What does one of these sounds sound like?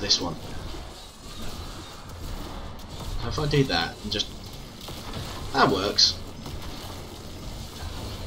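Blows and crackling magic bursts strike creatures.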